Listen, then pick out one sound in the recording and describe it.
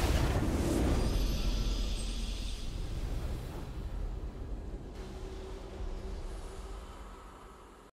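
A triumphant game fanfare swells and fades.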